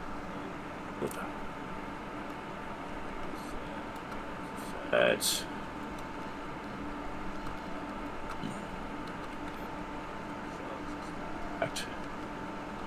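A cash register's keys click a few times.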